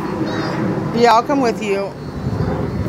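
A young girl squeals in a high voice close by.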